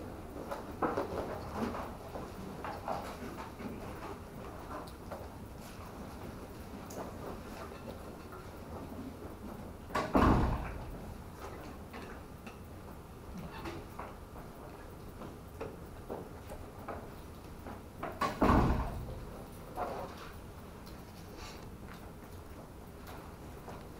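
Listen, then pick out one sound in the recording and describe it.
A man speaks at a distance in a room with a slight echo.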